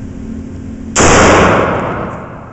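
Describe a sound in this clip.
A pistol fires a single loud shot that echoes through a large hall.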